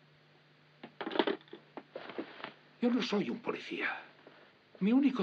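A middle-aged man talks back with irritation.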